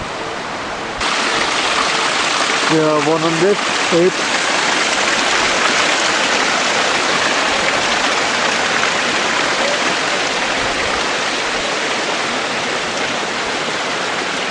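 Water pours and splashes steadily from a row of spouts.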